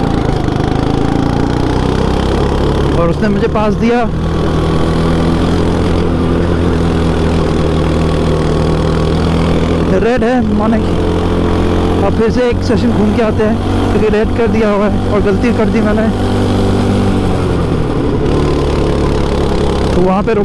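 A go-kart engine drones loudly up close, rising and falling in pitch as it speeds up and slows down.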